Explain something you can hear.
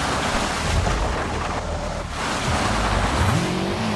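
A car scrapes and thuds against a stone wall.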